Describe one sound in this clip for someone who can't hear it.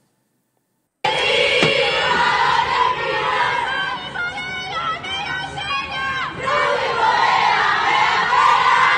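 A crowd sings and shouts from open windows, heard from a distance outdoors.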